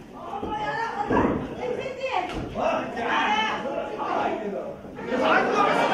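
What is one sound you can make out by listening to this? Bodies slam hard onto a wrestling ring mat.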